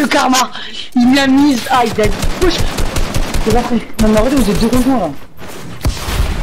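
Video game gunshots fire in rapid bursts.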